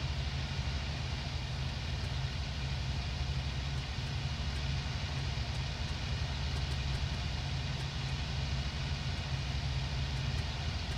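Wind rushes past a cockpit.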